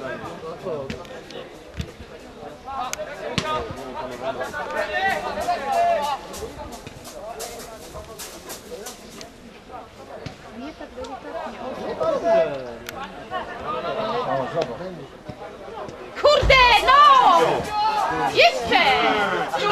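Football players shout to each other across an open pitch.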